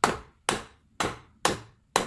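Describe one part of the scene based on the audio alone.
A hammer taps on wood.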